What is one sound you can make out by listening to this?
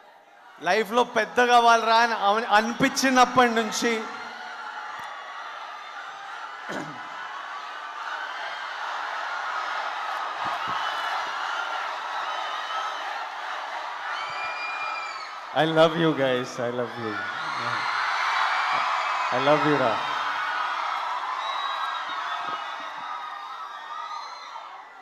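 A large crowd cheers and screams.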